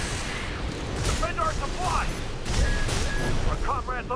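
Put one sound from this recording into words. A large explosion booms and rumbles.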